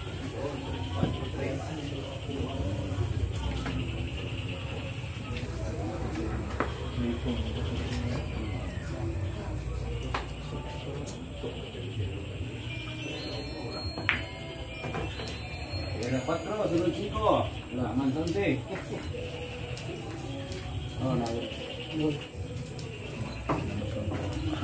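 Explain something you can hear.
Billiard balls click sharply together on a table.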